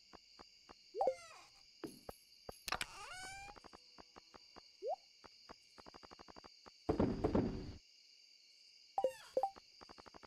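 Short rising game chimes sound as a menu opens and closes.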